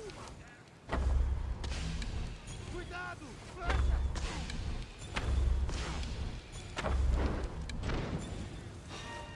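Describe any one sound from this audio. A bow looses arrows with sharp twangs and heavy thuds.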